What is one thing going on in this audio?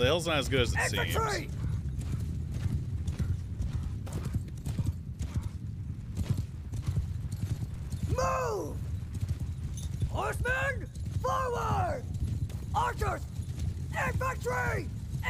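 A man speaks with animation into a close microphone.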